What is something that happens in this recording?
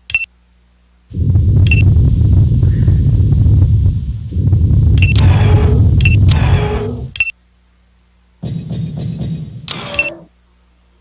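Short electronic beeps chime.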